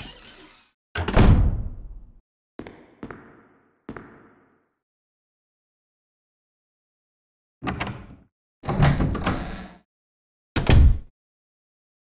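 A heavy wooden door thuds shut.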